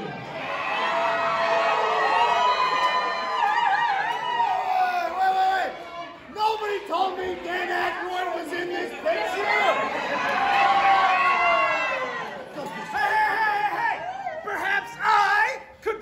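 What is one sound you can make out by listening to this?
A young man speaks with animation and shouts.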